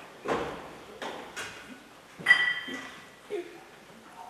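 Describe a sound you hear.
Dishes and utensils clink and clatter on a counter.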